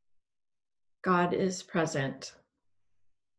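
A woman speaks softly and calmly, close to a microphone.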